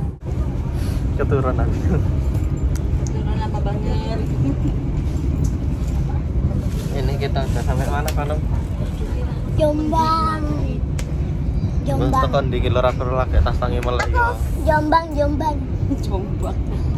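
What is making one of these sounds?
A young man talks close by in a lively way.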